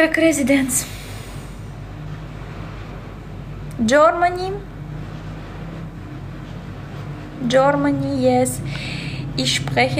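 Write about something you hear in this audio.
A young woman speaks casually and close by, in short bursts with pauses.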